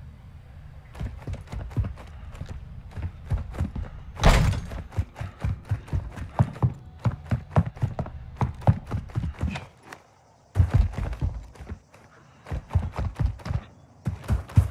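Quick footsteps run across hard floors and dirt.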